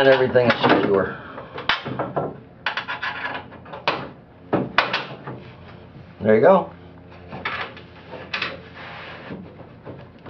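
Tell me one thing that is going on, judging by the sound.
Metal parts clink and scrape.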